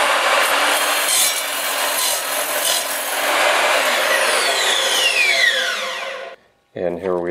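A power saw whines loudly as it cuts through wood, then winds down.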